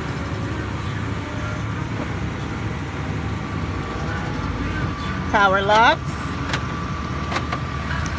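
An electric car window motor whirs as the glass slides down and up.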